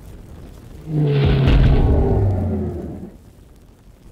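A beast snarls.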